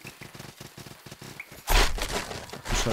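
A blade slashes and strikes in a fight.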